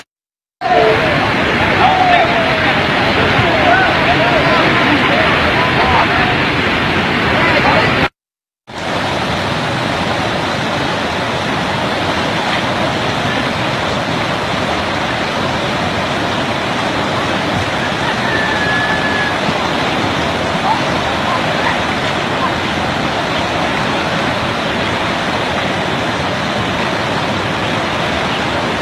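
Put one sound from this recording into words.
Floodwater rushes and roars loudly.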